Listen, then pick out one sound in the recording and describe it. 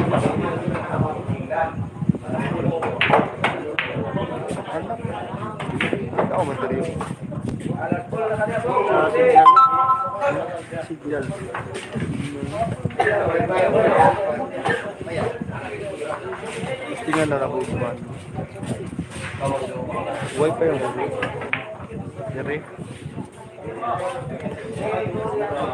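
Men and women talk nearby.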